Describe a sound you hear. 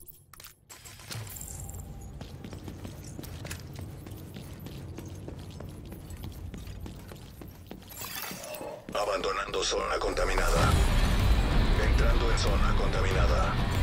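Footsteps thud as a soldier walks through a building.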